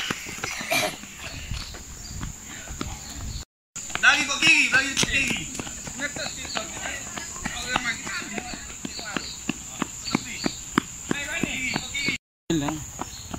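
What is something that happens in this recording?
Footsteps patter quickly on a paved road.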